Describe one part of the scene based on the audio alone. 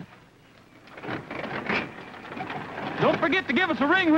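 An old car engine sputters and runs.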